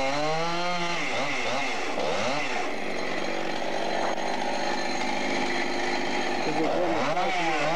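A chainsaw cuts through a log with a rough, grinding roar.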